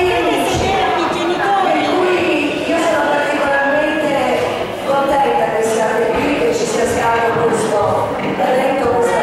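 A woman speaks with animation through a microphone in an echoing hall.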